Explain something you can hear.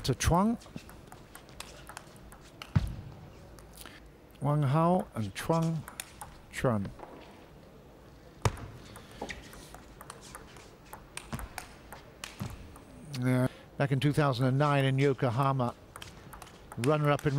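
A ball clicks back and forth across a table.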